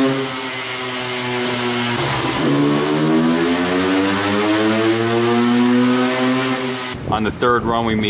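A motorcycle engine idles and then revs up loudly.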